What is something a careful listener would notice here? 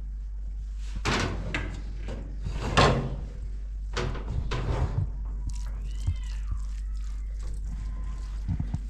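A spoon scrapes and clinks inside a metal pot.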